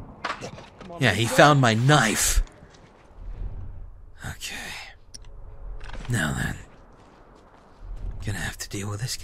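Footsteps crunch softly through snow and grass.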